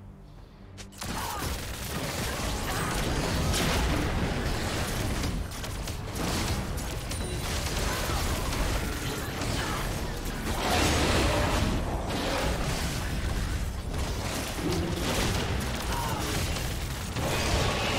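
Magic blasts and sword strikes crash and crackle in a busy fight.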